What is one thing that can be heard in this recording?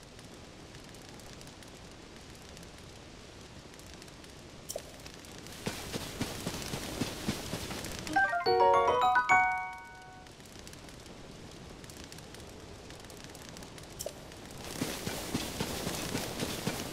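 A small fire crackles.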